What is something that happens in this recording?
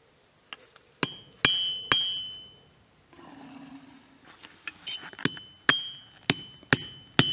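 A hammer strikes metal on an anvil, each blow ringing out.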